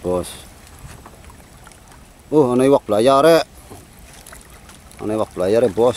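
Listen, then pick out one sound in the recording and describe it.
Water sloshes as a net sweeps through it.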